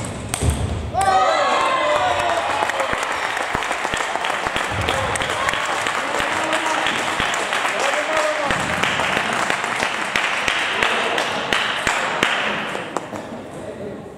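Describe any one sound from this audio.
Spectators cheer and shout loudly in an echoing hall.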